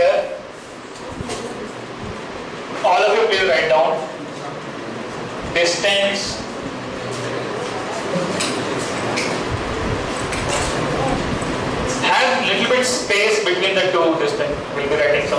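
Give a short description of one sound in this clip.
A man speaks calmly through a clip-on microphone.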